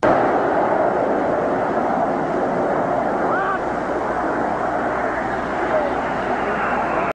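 A large jet plane roars steadily overhead.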